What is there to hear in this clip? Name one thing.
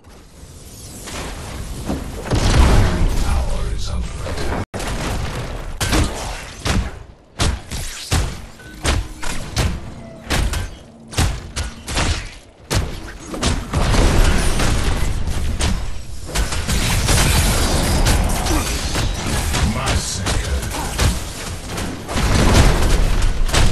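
Weapons clash and magic blasts burst in a fast fight.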